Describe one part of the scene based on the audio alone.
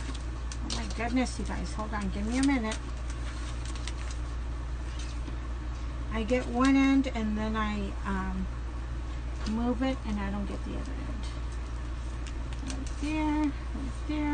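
An elderly woman talks calmly close by.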